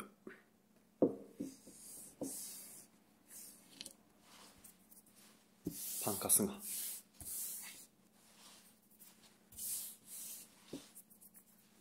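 Fingers tap on a wooden table.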